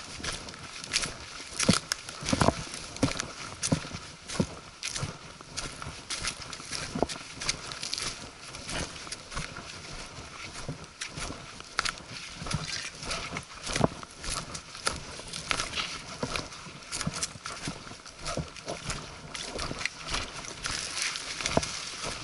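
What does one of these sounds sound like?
Footsteps crunch through dry leaves and twigs on a forest floor.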